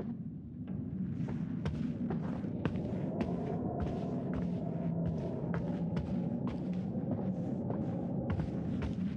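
Footsteps thud steadily down wooden stairs.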